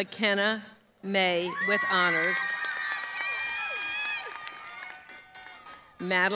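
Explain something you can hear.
A crowd cheers and whoops outdoors.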